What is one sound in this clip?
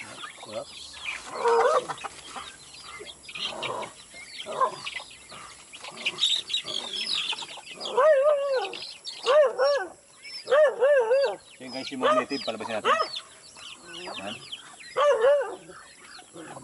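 Chickens squawk and cluck loudly as they are grabbed.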